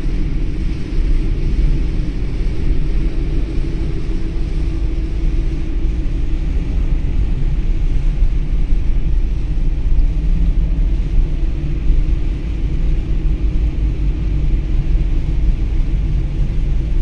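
Rain patters steadily on a car's windows.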